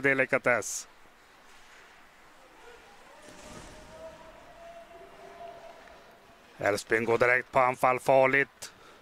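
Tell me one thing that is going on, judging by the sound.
Skates scrape on ice in a large echoing arena.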